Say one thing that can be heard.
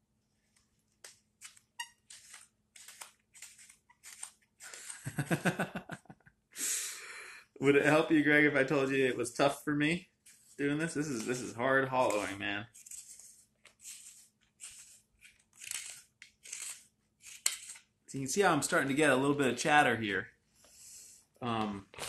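A knife shaves wood in short, quick scraping strokes.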